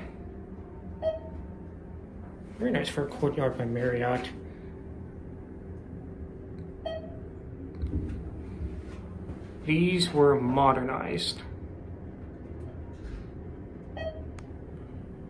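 An elevator chime sounds with a short tone.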